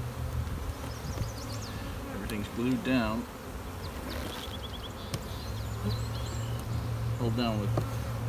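Bees buzz steadily close by.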